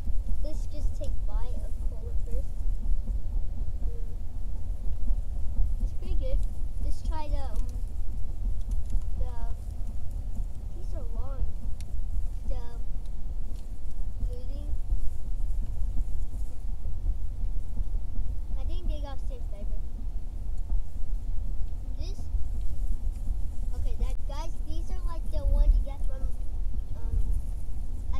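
A car engine rumbles low and steady inside the cabin.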